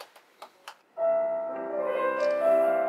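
A piano plays.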